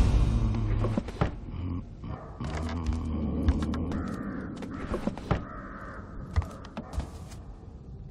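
Footsteps thud on creaky wooden floorboards.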